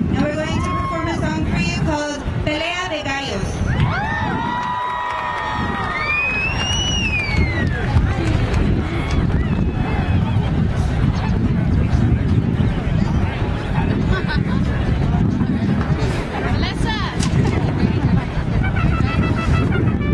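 A mariachi band plays outdoors.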